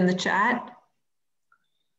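A middle-aged woman speaks briefly over an online call.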